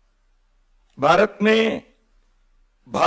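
A middle-aged man speaks slowly and calmly into a microphone, his voice amplified over loudspeakers.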